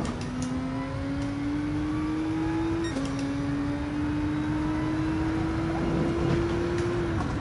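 A racing car engine revs higher and higher, dropping briefly as it shifts gear.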